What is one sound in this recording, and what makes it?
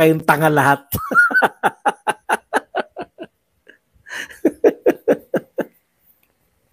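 A man laughs loudly in bursts.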